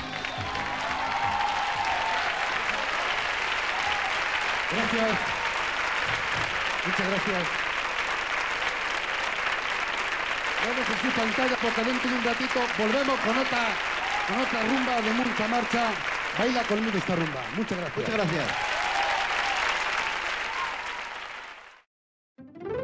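A large crowd claps and cheers in a big hall.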